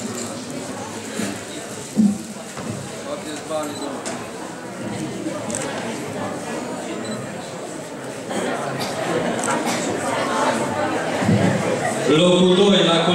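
Several people talk quietly in an echoing hall.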